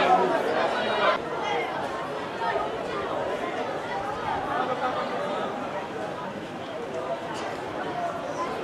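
A crowd of men murmurs and talks softly in a large echoing hall.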